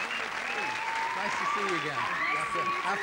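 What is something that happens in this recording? A man speaks into a microphone over the crowd.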